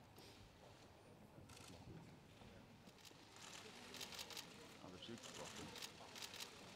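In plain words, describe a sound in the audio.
A crowd of people murmur and talk quietly in a large echoing hall.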